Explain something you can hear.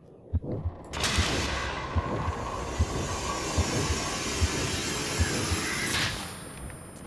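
A burst of magical energy roars and crackles.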